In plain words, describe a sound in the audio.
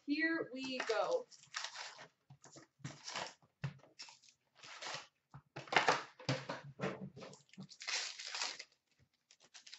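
Cardboard boxes and card packs rustle and scrape as hands handle them.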